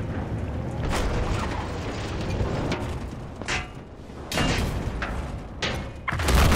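A heavy cannon fires in loud booming blasts.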